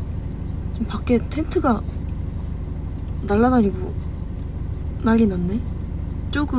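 A young woman speaks softly and expressively close by.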